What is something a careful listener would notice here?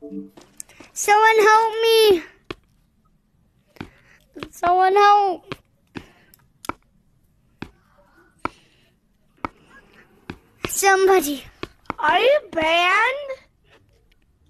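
A young child whoops and squeals in a high voice over game chat.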